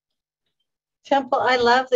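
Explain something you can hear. Another middle-aged woman speaks brightly over an online call.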